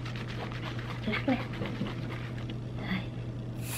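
Whipped cream hisses from a spray can.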